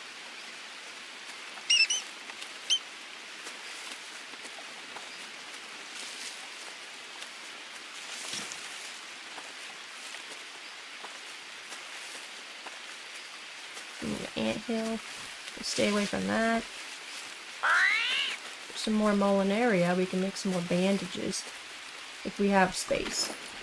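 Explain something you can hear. Footsteps rustle softly through leafy undergrowth.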